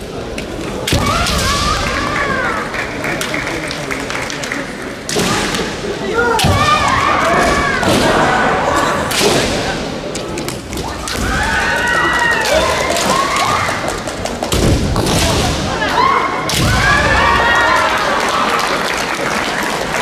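Young women shout sharp kendo cries in a large echoing hall.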